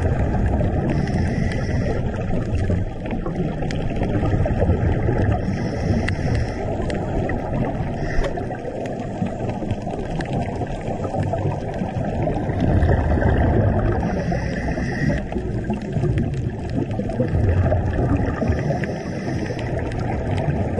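Bubbles burst out and gurgle in regular puffs as a diver breathes out underwater.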